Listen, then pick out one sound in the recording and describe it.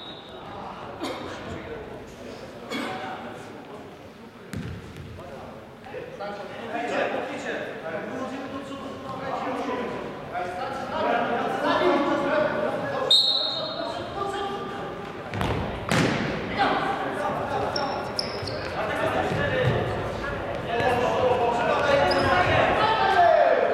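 A football thuds off feet and bounces on a hard floor.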